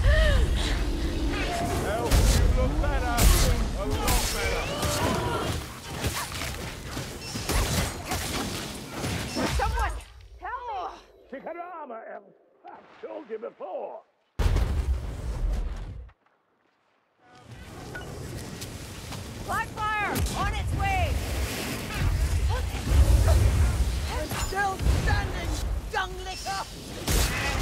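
Blades slash and strike into creatures with heavy thuds.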